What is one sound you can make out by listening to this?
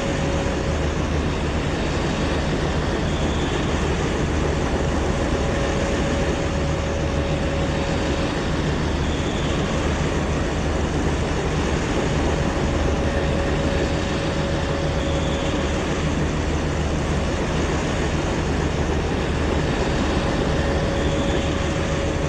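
A diesel locomotive engine drones steadily nearby.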